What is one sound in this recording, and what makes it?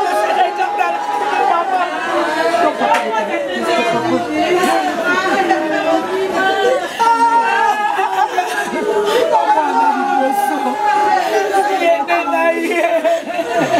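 A woman wails and cries loudly close by.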